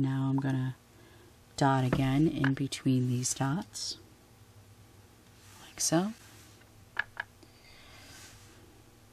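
A dotting tool taps softly on a painted surface.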